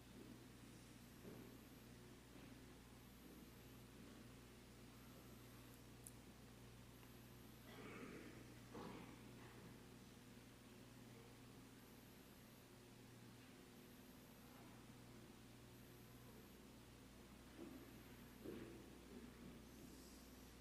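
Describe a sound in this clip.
A man speaks slowly with long pauses into a microphone in a large room.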